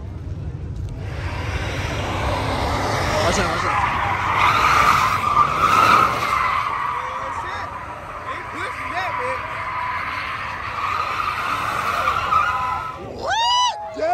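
Tyres screech loudly as a pickup truck spins in circles.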